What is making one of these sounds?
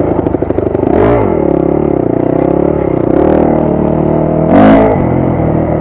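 A dirt bike's frame thumps and rattles over bumps in the trail.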